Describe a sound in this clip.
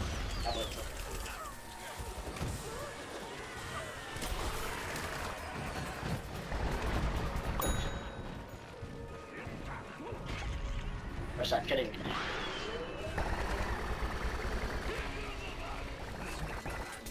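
Video game weapons fire in rapid bursts.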